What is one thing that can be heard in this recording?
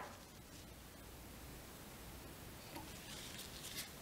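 Fingers rustle softly against a tied fishing fly.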